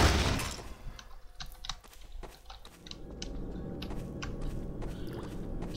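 Footsteps crunch on gritty concrete at a walking pace.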